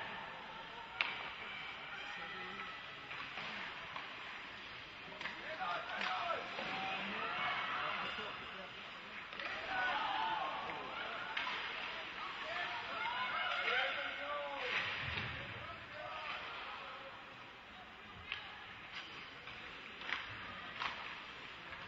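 Hockey sticks smack a puck with sharp cracks.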